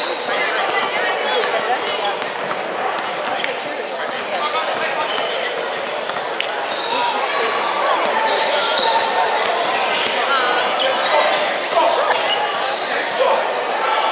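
A crowd chatters and calls out, echoing in a large hall.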